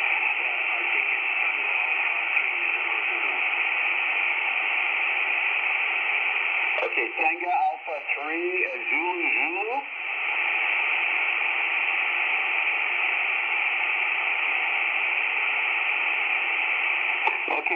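A radio hisses with steady shortwave static through its small loudspeaker.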